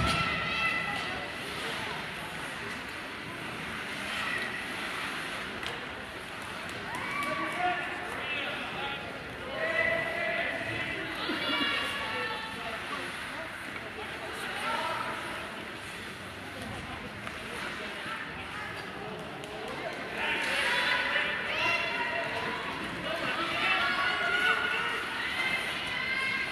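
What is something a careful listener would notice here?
Young players shout and call out across a large echoing rink.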